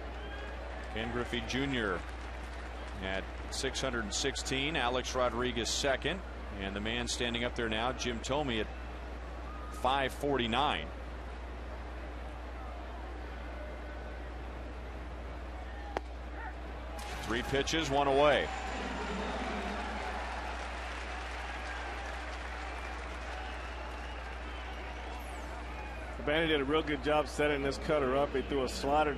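A large crowd murmurs in an open ballpark.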